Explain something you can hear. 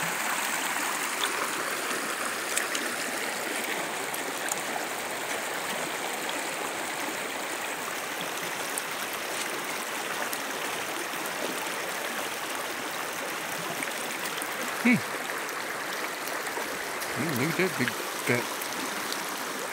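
Shallow water rushes and babbles steadily over stones outdoors.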